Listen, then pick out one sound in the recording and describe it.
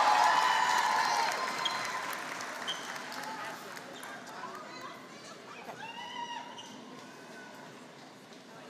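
A crowd applauds and cheers in a large hall, slowly fading.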